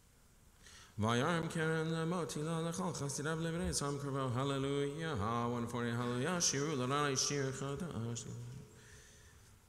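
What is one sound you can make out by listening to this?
A man chants in a sung voice through a microphone in an echoing hall.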